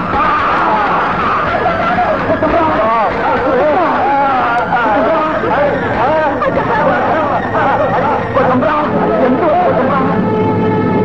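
A crowd of men shouts.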